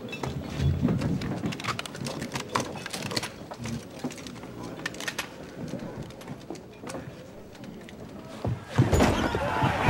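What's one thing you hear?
A crowd of men murmurs and talks.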